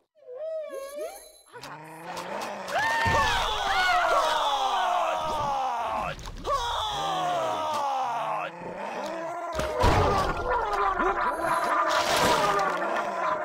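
Chomping and crunching effects sound again and again as prey is eaten.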